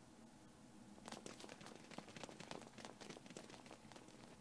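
Footsteps patter quickly on a hard surface.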